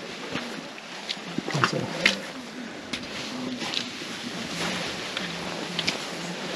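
Shoes squelch and crunch in footsteps on wet, muddy ground.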